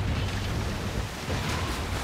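A cannon shell explodes with a boom.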